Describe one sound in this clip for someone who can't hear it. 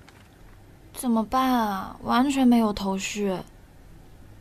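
A young woman speaks calmly nearby.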